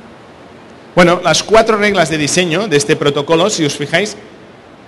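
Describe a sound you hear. A middle-aged man speaks calmly into a microphone through loudspeakers.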